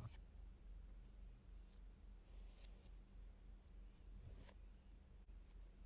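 Plastic toy bricks click and rattle in hands.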